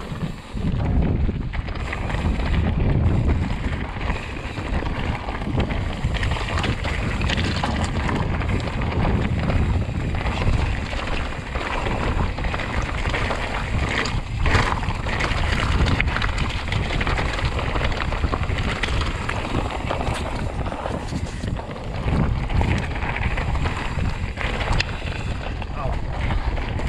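Bicycle tyres roll and crunch over a rough gravel trail.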